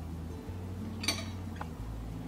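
A plate is set down on a wooden table with a light knock.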